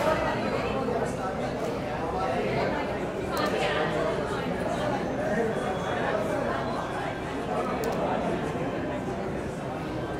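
A crowd of people chatters around a busy room.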